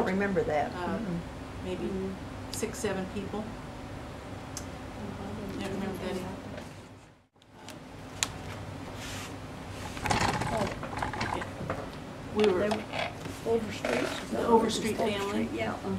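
Elderly women talk calmly nearby.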